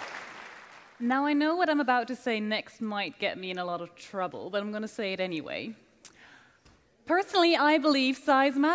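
A young woman speaks clearly into a microphone, announcing.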